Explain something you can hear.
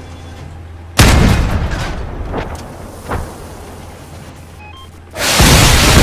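A tank cannon fires with heavy booming blasts.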